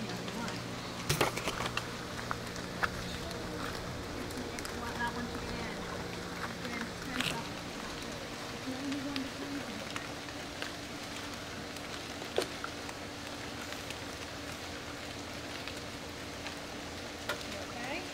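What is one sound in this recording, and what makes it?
Water sloshes in a pool around a wading woman.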